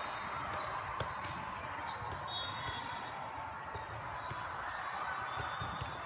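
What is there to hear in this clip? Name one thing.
A volleyball thumps as it is hit.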